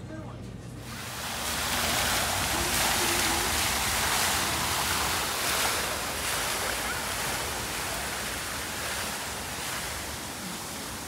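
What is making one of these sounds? A fountain splashes and rushes steadily outdoors.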